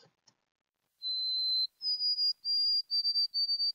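A recorded bird whistles a series of high, clear notes.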